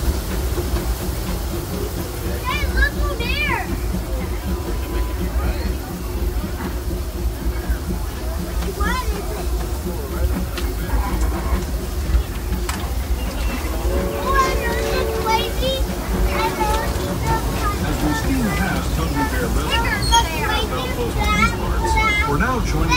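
A small train rumbles steadily along its track.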